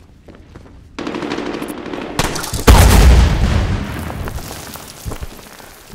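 Gunfire rattles loudly close by.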